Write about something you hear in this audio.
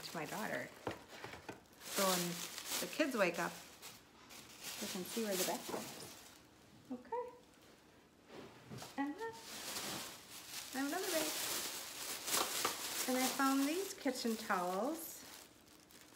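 A woman talks with animation, close to a microphone.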